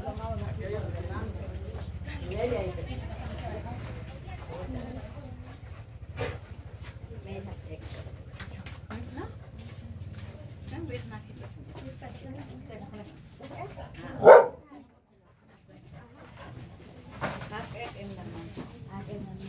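A crowd of women and men chatter close by.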